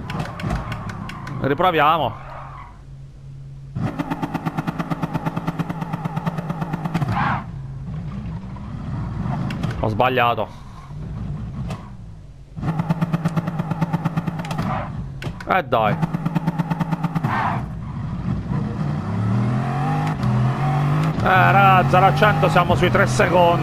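A high-powered sports car engine accelerates hard, shifting up through the gears.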